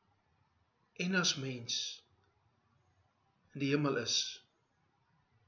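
A middle-aged man speaks calmly and close to a microphone in short phrases.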